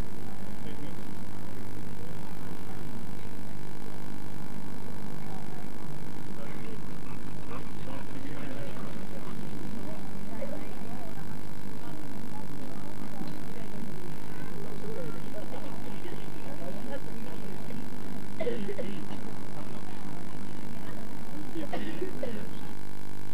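A crowd of people chatters in the background outdoors.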